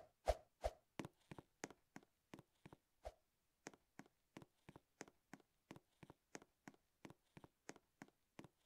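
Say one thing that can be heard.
A game character's footsteps tap quickly and evenly.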